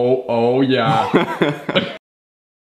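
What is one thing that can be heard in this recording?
A young man laughs loudly and close by.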